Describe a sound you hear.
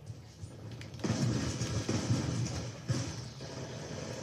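Gunshots fire in a rapid burst from a game's speakers.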